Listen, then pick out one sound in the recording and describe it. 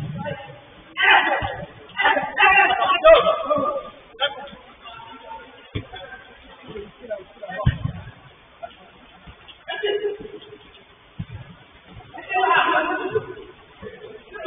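Men shout to each other.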